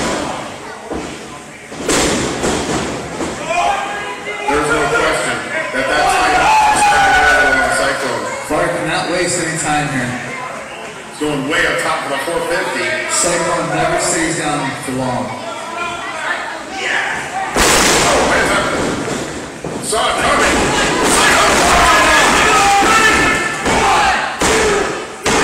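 A small crowd shouts and cheers in an echoing hall.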